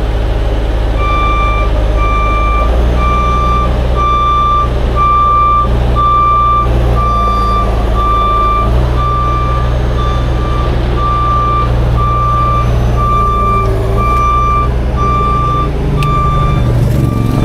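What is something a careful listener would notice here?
A truck's warning beeper sounds in a steady, even rhythm.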